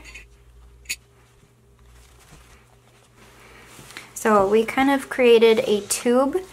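Fabric rustles softly as it is handled.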